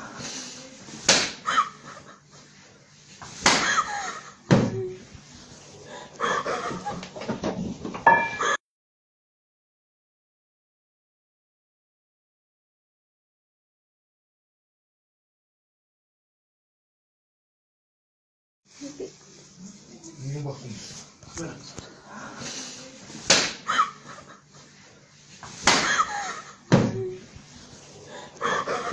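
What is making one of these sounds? Bodies thump and bang during a scuffle.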